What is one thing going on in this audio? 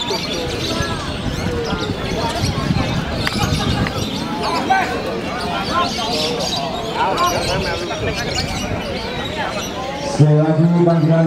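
Many caged birds chirp and sing loudly.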